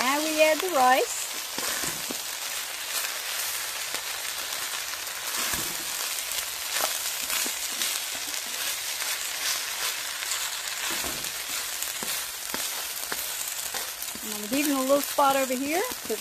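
A spatula scrapes and stirs against a metal pan.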